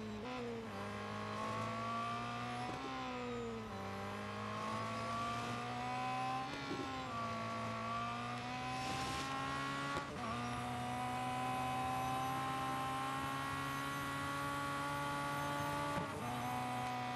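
A racing car engine roars at high revs, rising in pitch and dropping briefly with each gear change.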